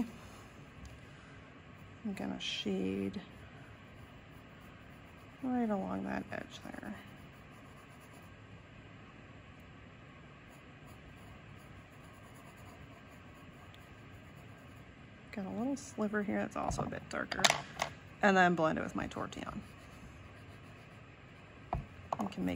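A pencil softly scratches on paper.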